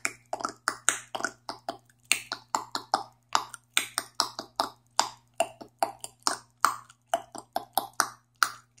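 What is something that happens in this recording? A young woman makes quick, rhythmic popping and hissing sounds with her mouth, close by.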